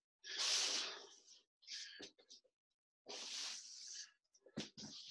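A foam mat rustles and scrapes as it is dragged.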